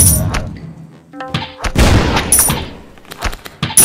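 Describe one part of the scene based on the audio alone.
Cards swish and snap as they are dealt out.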